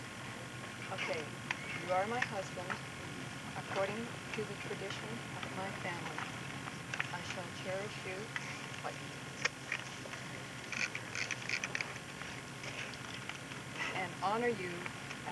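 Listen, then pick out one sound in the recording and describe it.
A man speaks calmly nearby, outdoors.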